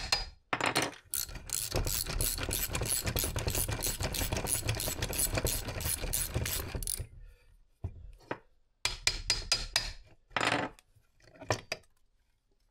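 A ratchet wrench clicks rapidly as it turns.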